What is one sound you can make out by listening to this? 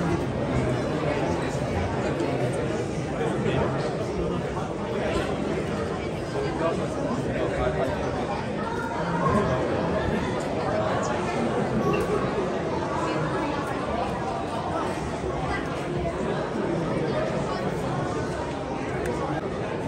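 A crowd of men and women chatters steadily all around in an echoing indoor hall.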